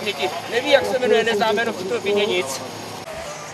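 A man talks over a radio up close.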